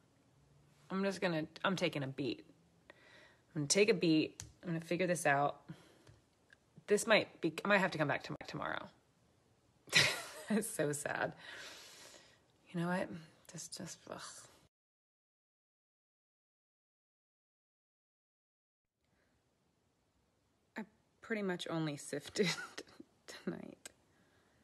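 A young woman talks casually and close up, as if into a phone.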